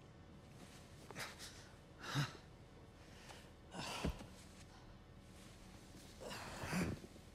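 A young man gasps and breathes heavily nearby.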